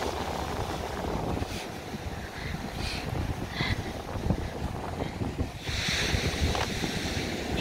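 Wind blusters loudly outdoors.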